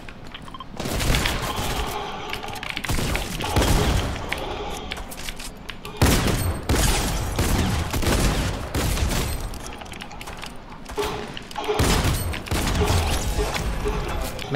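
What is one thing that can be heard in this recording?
Shotgun blasts go off in a video game.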